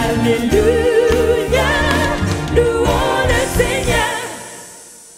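A young woman sings loudly into a microphone.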